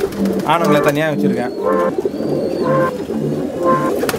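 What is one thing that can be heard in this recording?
Pigeons coo softly.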